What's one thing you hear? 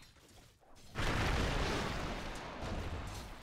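A loud magical blast roars and hisses.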